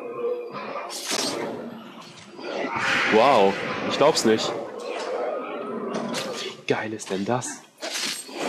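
A sword clangs in sharp strikes.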